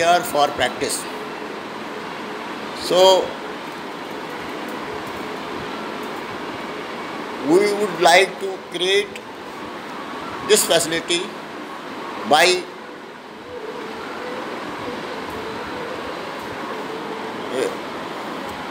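An elderly man speaks calmly close to the microphone, in short bursts with pauses.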